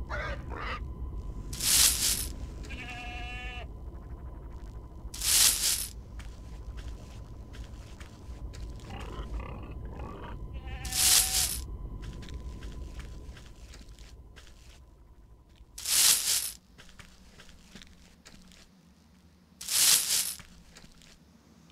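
Footsteps patter on a dirt path.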